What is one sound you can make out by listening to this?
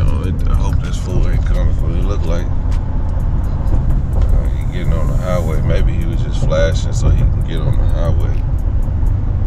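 A man sings close by, with feeling.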